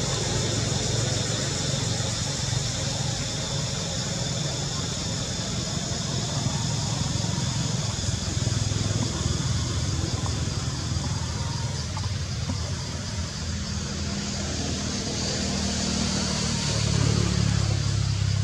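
Leaves and branches rustle as a monkey climbs through a tree.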